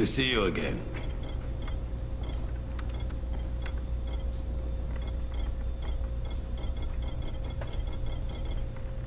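Soft electronic menu blips tick as a selection moves through a list.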